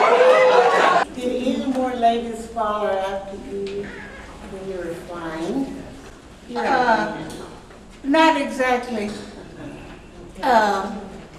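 A woman speaks through a microphone in a room.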